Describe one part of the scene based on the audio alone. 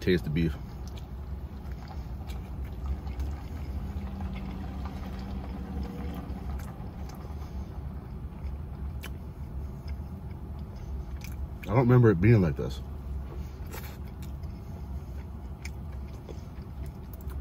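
A man chews food with his mouth full.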